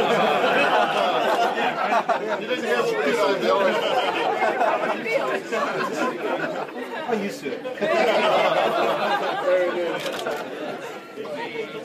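A woman laughs and talks close by.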